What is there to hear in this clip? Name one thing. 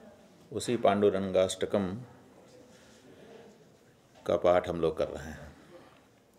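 A middle-aged man speaks calmly into a nearby microphone, pausing between phrases.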